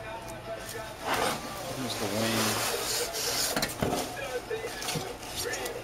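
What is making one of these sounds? Foam packing peanuts rustle and squeak.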